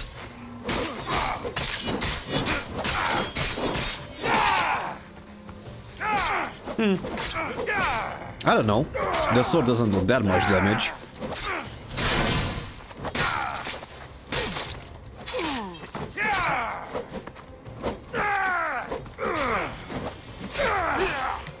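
Swords clash and strike.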